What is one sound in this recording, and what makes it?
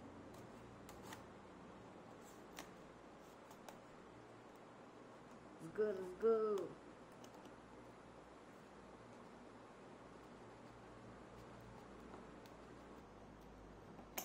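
Scissors snip through tape on a cardboard box.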